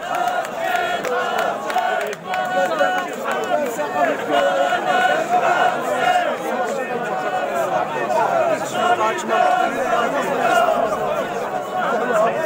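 Many men talk and shout close by.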